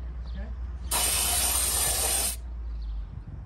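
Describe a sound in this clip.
An aerosol can hisses as it sprays.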